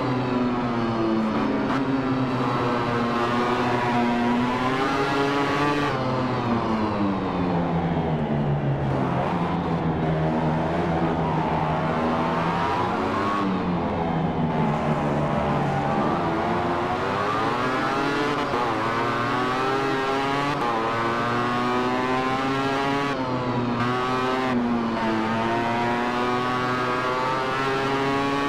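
Motorcycle engines roar and whine steadily, rising and falling in pitch as the bikes speed up and slow down.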